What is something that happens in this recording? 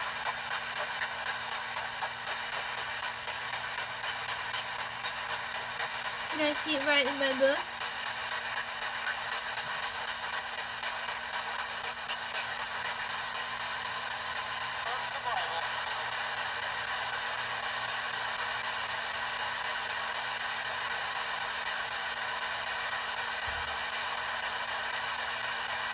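A radio hisses with steady static.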